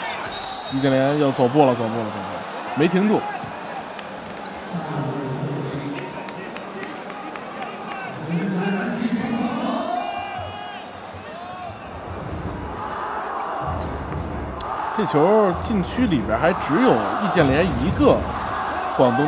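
A large crowd murmurs and cheers in a big echoing arena.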